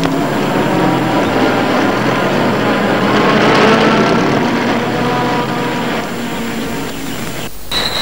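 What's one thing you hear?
A car engine runs as a car drives away.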